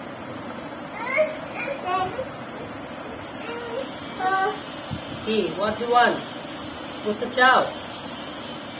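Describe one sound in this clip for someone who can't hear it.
A small child babbles and squeals.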